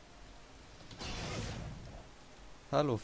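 A fireball bursts with a loud whoosh.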